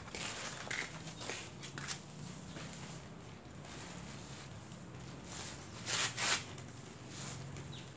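Hands dig and scrunch through moist potting soil.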